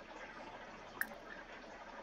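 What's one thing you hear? A short soft click sounds.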